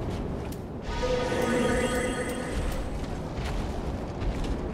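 A magic spell hums and shimmers.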